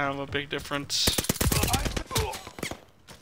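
A suppressed submachine gun fires rapid bursts in a video game.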